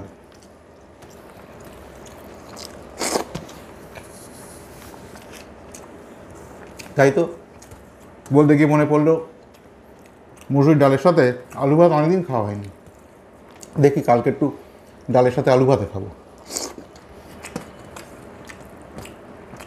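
A man chews and smacks his lips while eating.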